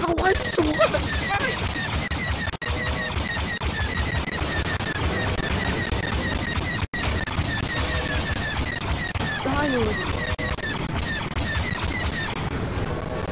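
Laser cannons fire in rapid repeated bursts.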